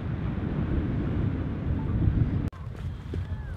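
Small waves lap gently on a shore.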